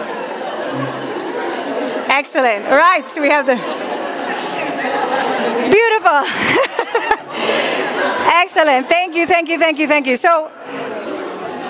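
A crowd of people chatters and laughs in the background.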